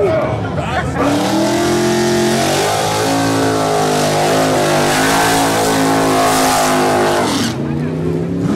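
A car engine roars loudly close by.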